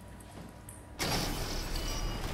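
A heavy sliding door whooshes open.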